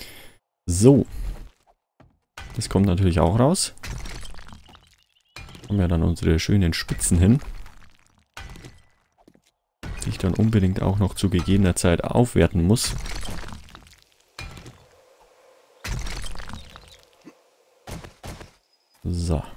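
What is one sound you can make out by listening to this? A pickaxe strikes packed earth in dull, repeated thuds.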